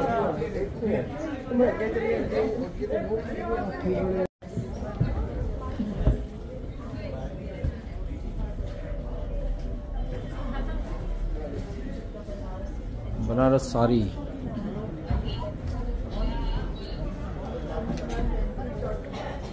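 A crowd of people chatters in an echoing hall.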